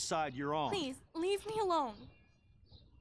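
A young woman pleads loudly and upset, close by.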